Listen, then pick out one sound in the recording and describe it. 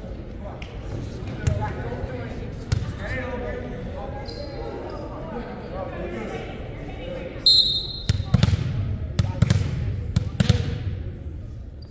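A crowd chatters quietly in the stands.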